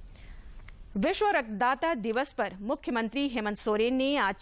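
A woman reads out clearly through a microphone.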